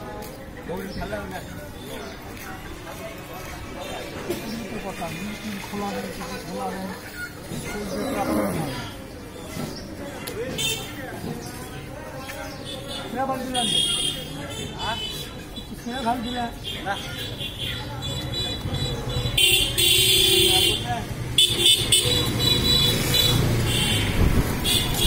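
A knife slices through skin and flesh.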